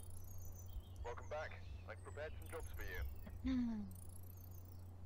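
A young man talks close to a microphone.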